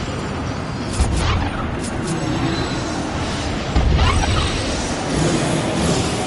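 A portal hums and swirls with a deep whoosh.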